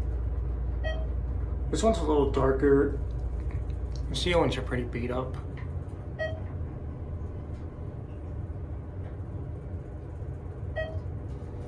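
An elevator chime dings briefly as each floor passes.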